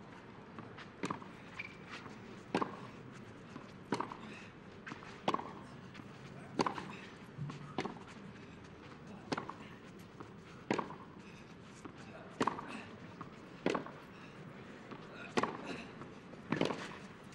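Tennis balls are struck back and forth with sharp pops in a rally.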